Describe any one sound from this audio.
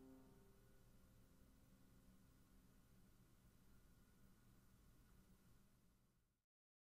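A piano plays softly, its notes fading away.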